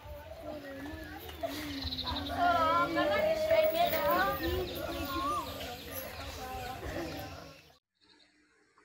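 Several women wail and sob loudly nearby.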